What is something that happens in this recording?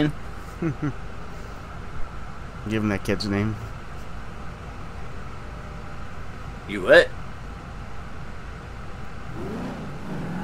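A car engine idles with a low, steady rumble.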